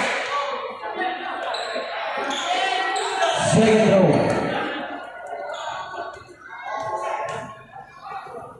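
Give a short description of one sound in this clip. A crowd of spectators chatters and calls out in a large echoing space.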